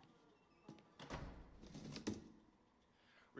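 A metal chair scrapes across the floor.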